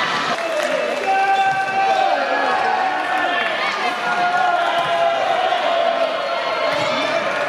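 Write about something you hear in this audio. A large crowd chants and cheers loudly in an echoing hall.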